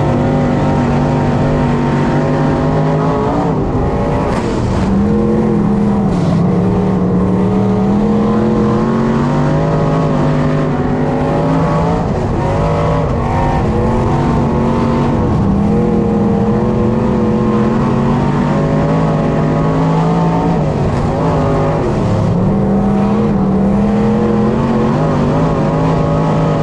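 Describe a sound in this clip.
A race car engine roars loudly up close, rising and falling in pitch as it speeds up and slows through the turns.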